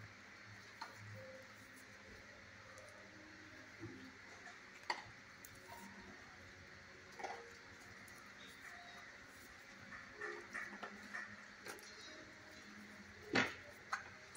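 A dog's paws click and shuffle on a hard floor.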